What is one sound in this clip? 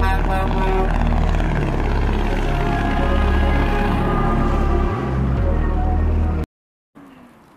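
A heavy truck engine roars as the truck drives past.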